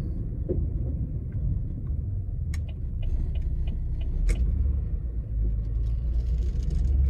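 A car engine hums low and steady while rolling slowly.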